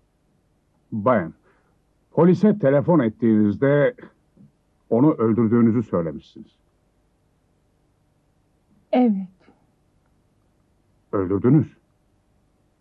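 A man speaks calmly and gravely nearby.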